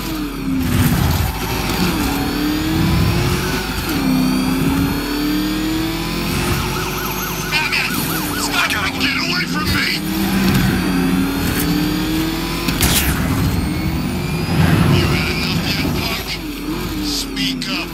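A powerful engine roars and revs steadily.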